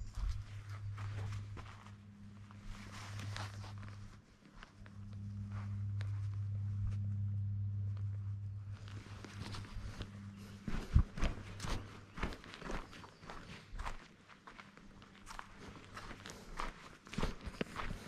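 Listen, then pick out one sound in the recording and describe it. Footsteps crunch along a dirt path.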